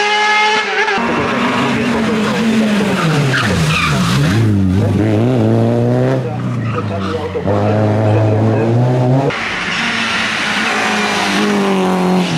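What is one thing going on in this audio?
A rally car engine revs hard and drops as the driver shifts gears.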